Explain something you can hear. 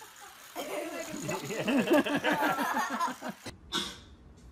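A baby babbles close by.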